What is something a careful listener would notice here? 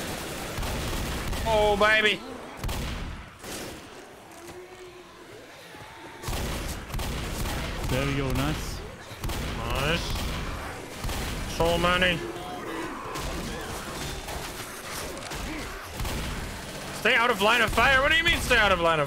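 Shotgun blasts boom in quick succession.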